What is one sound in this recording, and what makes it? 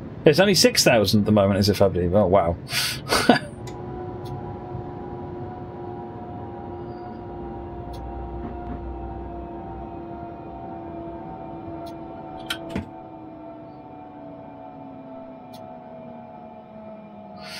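An electric train's motor hums steadily and slowly drops in pitch.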